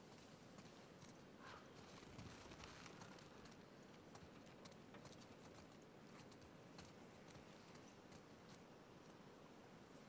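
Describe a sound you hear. Footsteps patter quickly on wet ground.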